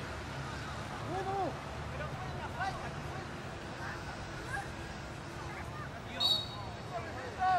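Men call out across an outdoor field.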